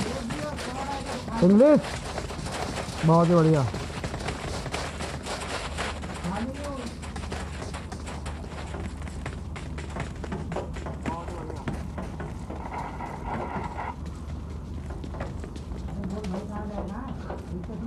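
Quick footsteps patter on sand.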